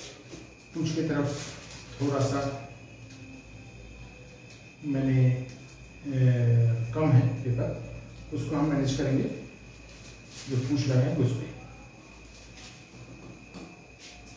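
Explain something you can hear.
Paper rustles and crinkles as it is folded.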